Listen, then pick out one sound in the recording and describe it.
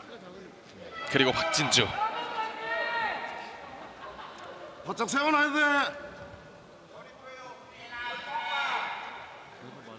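A crowd of spectators shouts and cheers in bursts in a large echoing hall.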